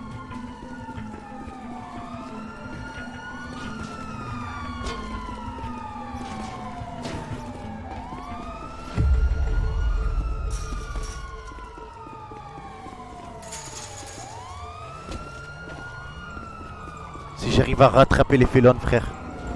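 Footsteps crunch quickly over gravel and hard ground.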